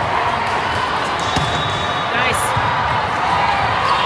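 A volleyball is served with a sharp slap.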